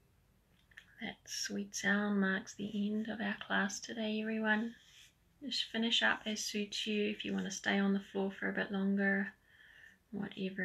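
A woman speaks calmly and softly, close by.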